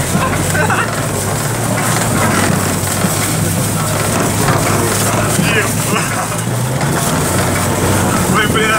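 Sled runners scrape and hiss steadily over packed snow.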